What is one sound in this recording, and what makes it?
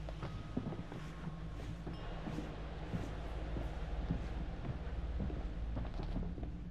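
A low wind rumbles outdoors.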